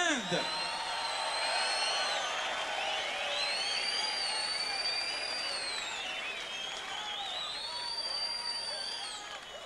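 A large crowd whistles shrilly.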